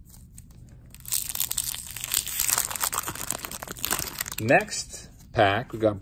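A plastic wrapper crinkles and tears open.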